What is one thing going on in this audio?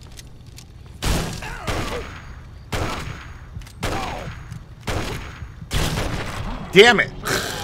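Gunshots boom loudly, one after another, with ringing echoes.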